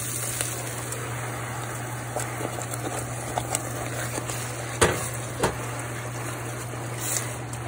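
Sugar sizzles and crackles in a hot pan.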